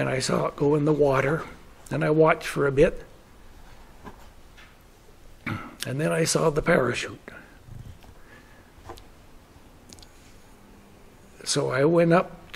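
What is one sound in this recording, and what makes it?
An elderly man speaks slowly and calmly nearby, with pauses.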